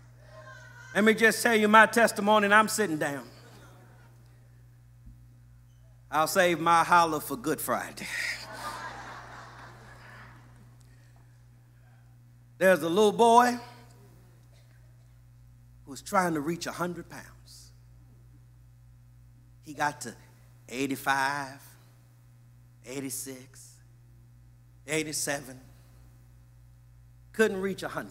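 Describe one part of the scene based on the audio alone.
A man speaks into a microphone with animation, in short bursts with pauses.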